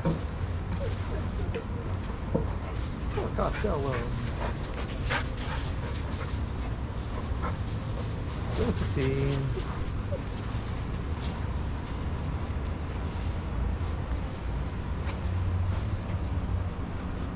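Paws scuffle on sandy ground.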